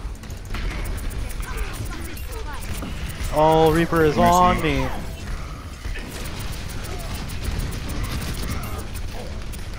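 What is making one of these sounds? Futuristic guns fire in rapid bursts.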